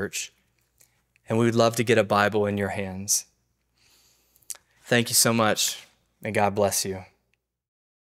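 A man speaks calmly and clearly, close to the microphone.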